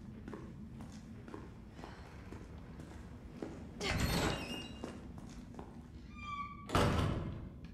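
Footsteps tap at an even pace on a hard floor.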